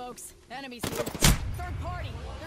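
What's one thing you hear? Gunshots crack sharply in a game.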